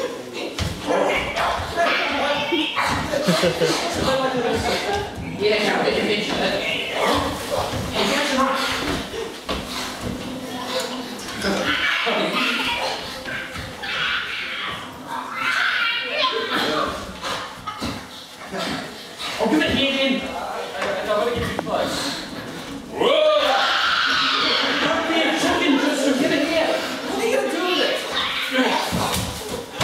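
A man speaks and cries out with strong emotion.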